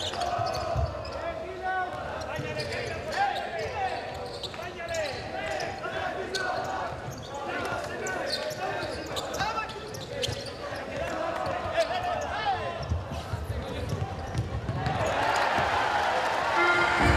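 Sneakers squeak sharply on a hard indoor court.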